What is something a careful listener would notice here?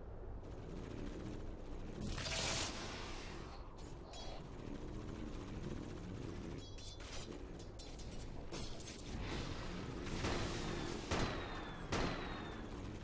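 Magic spells burst and blows strike in a video game battle.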